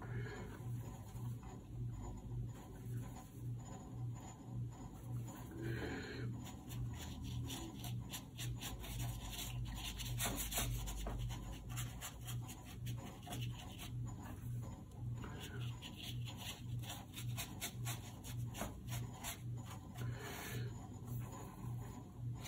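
A brush swirls wet paint in a palette.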